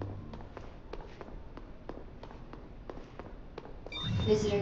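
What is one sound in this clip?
Footsteps click steadily on a hard floor.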